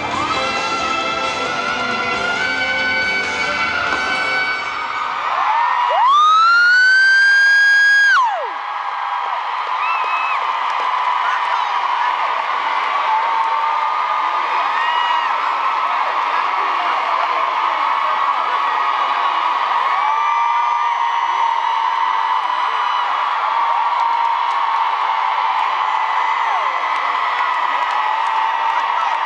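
A large crowd screams and cheers in a big echoing hall.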